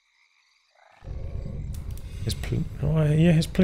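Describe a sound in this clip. Weapons clash and spells crackle in a video game battle.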